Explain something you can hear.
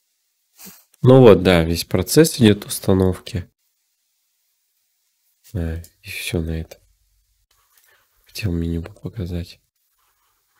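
A young man speaks calmly and close into a microphone, in short bursts.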